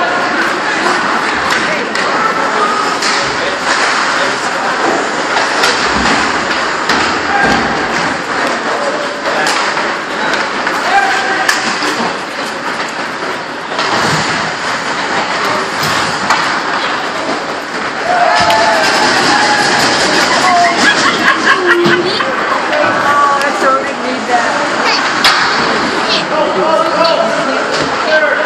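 Hockey sticks and pucks clack against each other.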